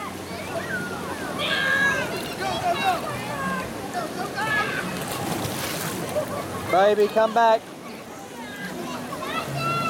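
Water splashes and laps.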